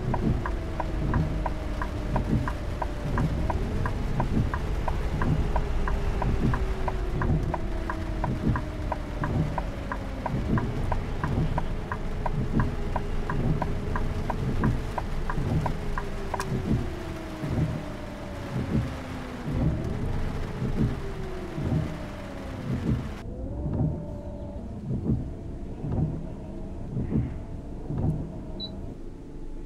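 Windscreen wipers thump in a steady rhythm.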